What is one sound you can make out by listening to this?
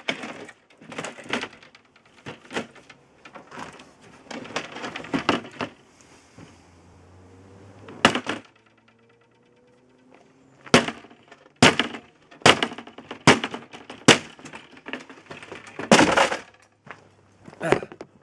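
Wood creaks and splinters as a panel is pried apart.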